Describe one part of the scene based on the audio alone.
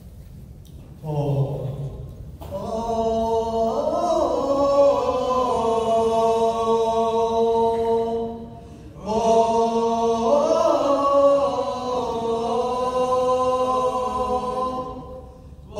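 A band plays music through loudspeakers in a large echoing hall.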